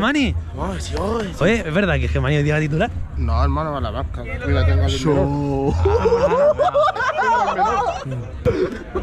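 A young man talks loudly and excitedly close by.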